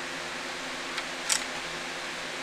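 A small metal connector snaps loose with a sharp click.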